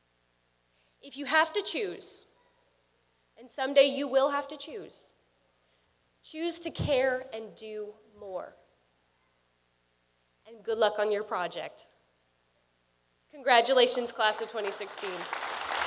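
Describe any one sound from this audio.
A young woman speaks calmly through a microphone, with pauses, in an echoing hall.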